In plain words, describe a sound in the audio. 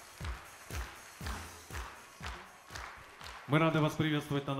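A crowd claps in rhythm.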